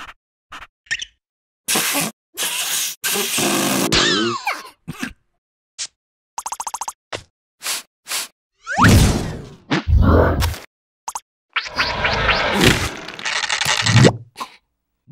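Cartoon creatures babble and squeal in high, comic voices.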